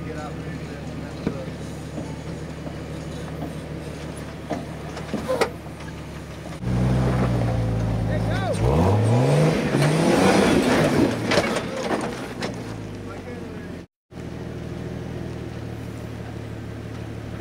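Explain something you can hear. An off-road vehicle's engine idles and rumbles steadily outdoors.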